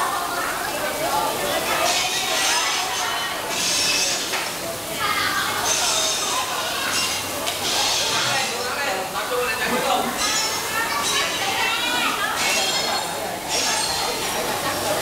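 Children chatter and shout in a noisy, echoing hall.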